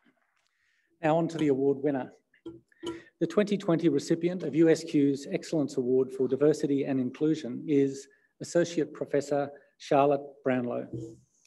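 A man speaks calmly into a microphone over a loudspeaker in a large echoing hall.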